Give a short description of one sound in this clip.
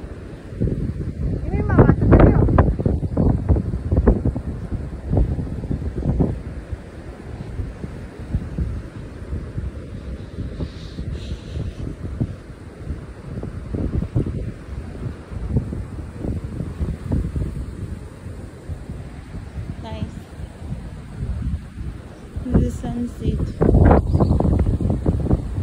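Waves wash gently onto the shore.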